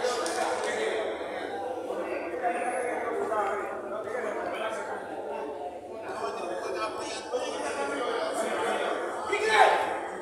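Men shout and call out to each other across an outdoor pitch.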